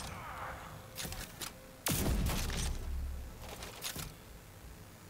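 Metallic clicks and clacks of a gun being reloaded.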